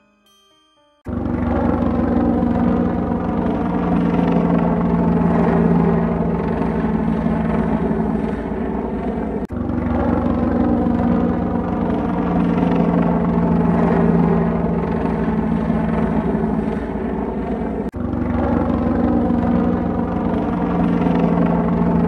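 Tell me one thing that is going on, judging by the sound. A helicopter's rotor thumps steadily as its engine roars.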